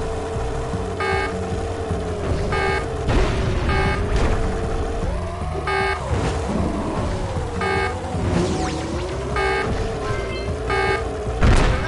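Bright chimes ring out several times as items are picked up.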